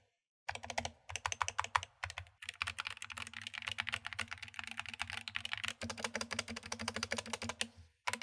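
Keys on a mechanical keyboard clack rapidly as someone types.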